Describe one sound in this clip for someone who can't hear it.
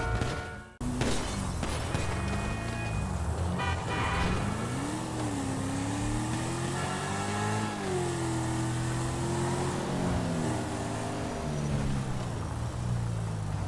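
A sports car engine revs up and down as the car speeds along.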